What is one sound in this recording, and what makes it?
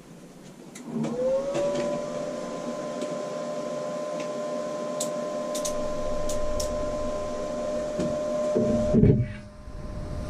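A welder buzzes and crackles steadily.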